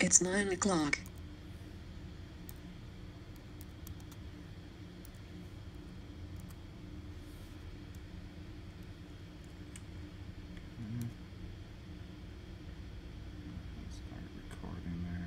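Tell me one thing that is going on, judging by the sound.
Keys click softly on a keyboard.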